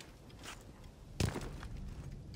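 A heavy thud sounds as a figure lands after a drop.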